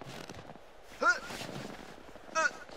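A man grunts loudly with effort.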